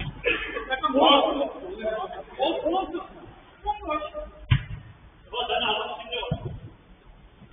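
Men shout to each other across an echoing indoor pitch.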